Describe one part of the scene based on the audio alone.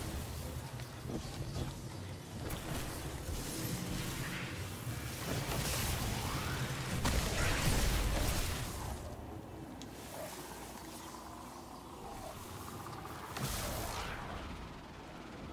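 Energy blasts whoosh and crackle loudly in bursts.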